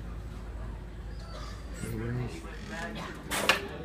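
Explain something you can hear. A door swings shut with a soft thud.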